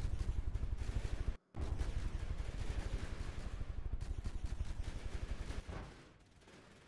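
A large vessel breaks apart with deep, rumbling crashes.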